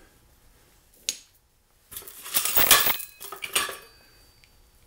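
Metal weights clank as they drop into a plastic bucket.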